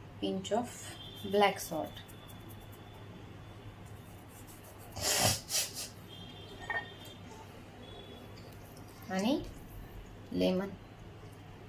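A spoon stirs food and scrapes against a glass bowl.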